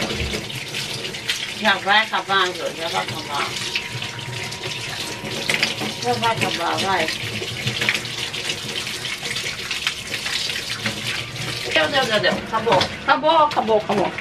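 Water runs from a tap and splashes into a metal sink.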